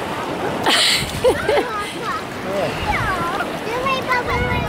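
A young woman talks excitedly nearby.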